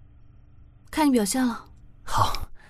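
A young woman speaks softly and playfully up close.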